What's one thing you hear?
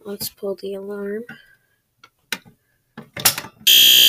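A fire alarm pull handle clicks as it is pulled.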